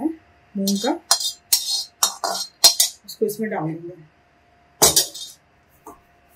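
A metal spatula scrapes and clinks against a metal pan.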